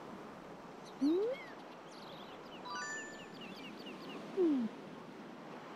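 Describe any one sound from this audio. A golf club swings back and forth with a soft whoosh.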